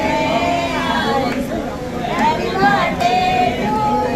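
Women clap their hands in time.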